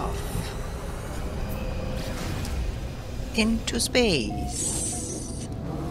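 A spaceship engine surges with a rushing whoosh.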